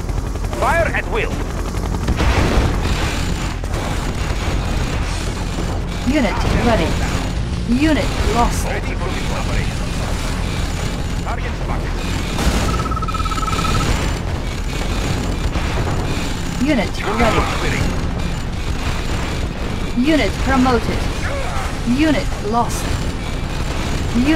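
Energy weapons zap and crackle in bursts.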